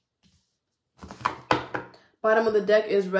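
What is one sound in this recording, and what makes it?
Cards are laid down onto a table with soft taps.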